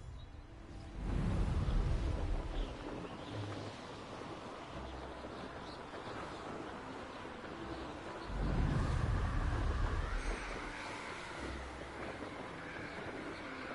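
Wind rushes steadily past a flying rider.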